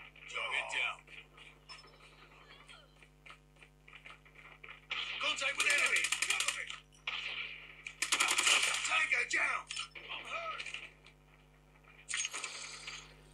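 Gunfire crackles from a phone game through a small speaker.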